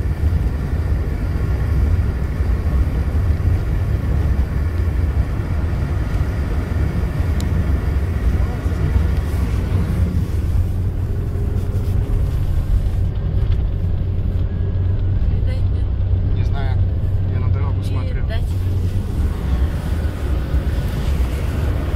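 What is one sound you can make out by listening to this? A car engine drones steadily at speed.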